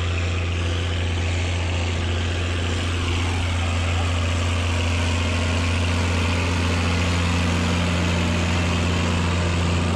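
A tractor engine rumbles steadily as it approaches and grows louder.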